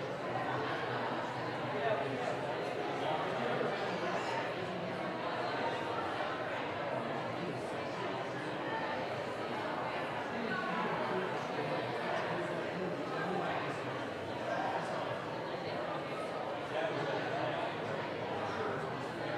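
Two men talk quietly in a large echoing hall.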